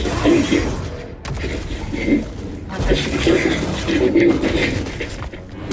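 A lightsaber hums and swooshes through the air.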